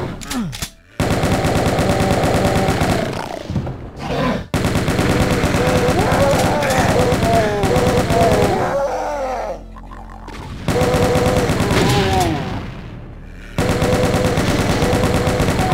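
A rapid-fire gun blasts in fast, steady bursts.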